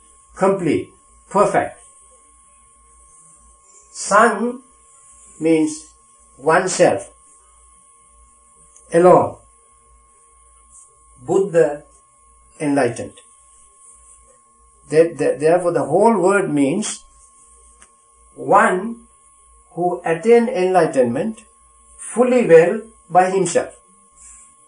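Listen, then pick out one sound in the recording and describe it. An elderly man speaks calmly and slowly, with long pauses between phrases.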